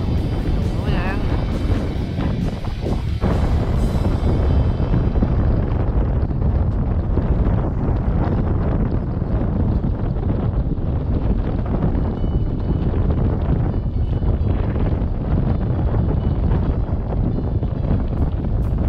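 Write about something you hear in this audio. Choppy water laps against a floating dock.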